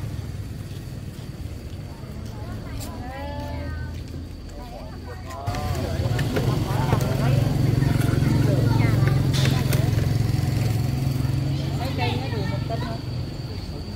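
Plastic bags rustle as vegetables are handled.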